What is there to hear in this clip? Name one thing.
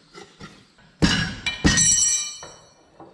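Metal tire irons clank sharply against a wheel rim.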